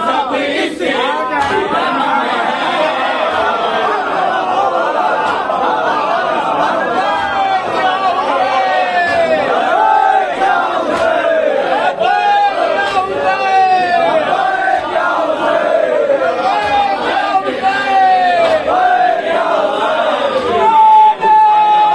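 Men beat their chests in a steady rhythm.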